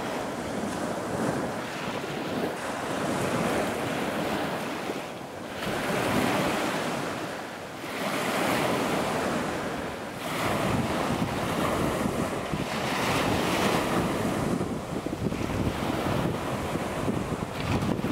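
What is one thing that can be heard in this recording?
Small waves break and wash onto a pebble shore.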